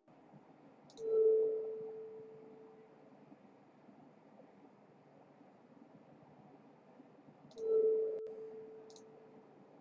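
Soft electronic chimes ring out.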